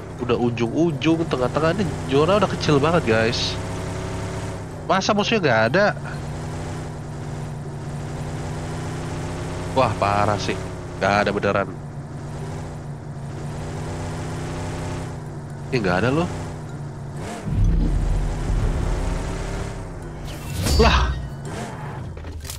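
A car engine hums steadily as a car drives over grass.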